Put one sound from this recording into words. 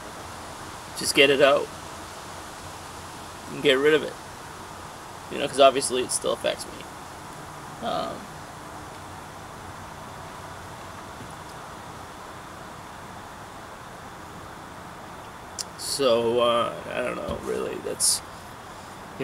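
A man speaks calmly and haltingly, close by, with long pauses.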